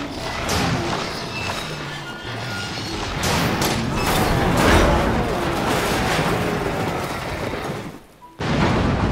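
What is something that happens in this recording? A monster growls and snarls loudly.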